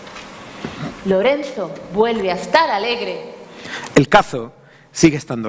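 A woman sings expressively on a stage in a large hall.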